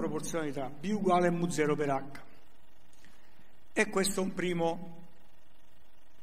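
An elderly man lectures through a microphone.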